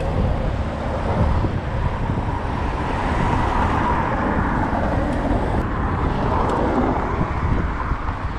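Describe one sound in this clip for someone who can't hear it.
Car engines hum and pass by close.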